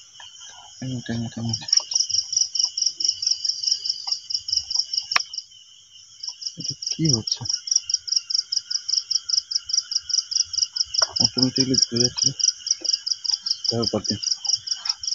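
A man speaks briefly in short bursts close by.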